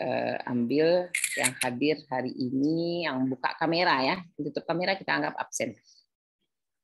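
A woman speaks calmly over an online call.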